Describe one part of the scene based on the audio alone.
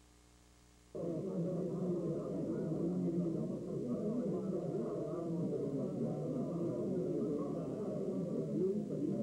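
A crowd of elderly men chatters and murmurs nearby.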